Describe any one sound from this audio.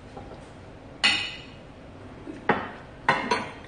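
Dishes clatter on a table.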